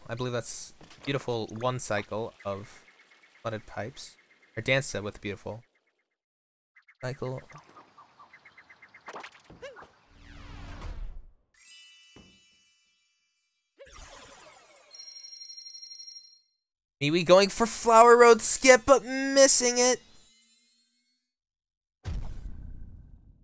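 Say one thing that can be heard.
Video game sound effects chime and jingle.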